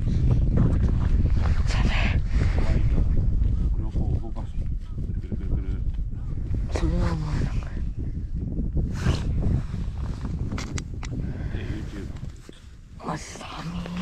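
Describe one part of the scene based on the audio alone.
A man talks calmly close by, outdoors in wind.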